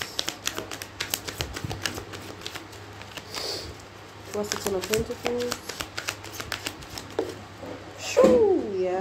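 Paper banknotes rustle and flick as they are counted.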